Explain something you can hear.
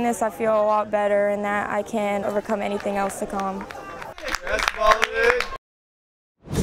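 A group of men clap their hands.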